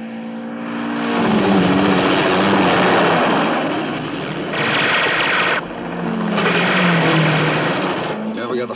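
A car engine roars.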